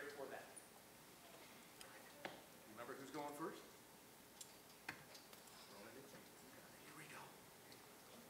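A man speaks quietly in a large hall.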